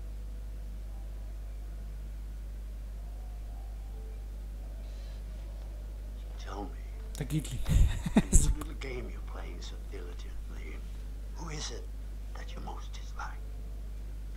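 A middle-aged man speaks with emotion, close by.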